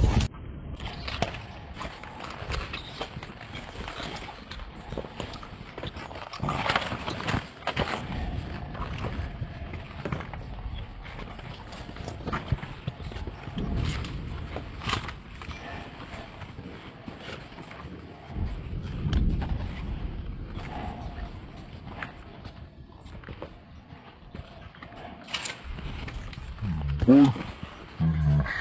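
Footsteps crunch on broken concrete and rubble.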